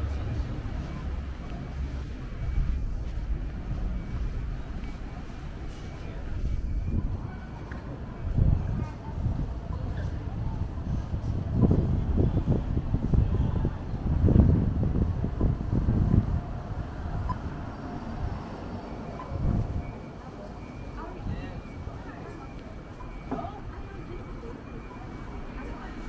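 Low city street noise rumbles steadily outdoors.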